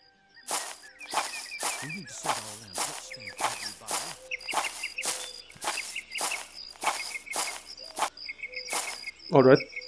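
Armoured footsteps crunch steadily on soft ground.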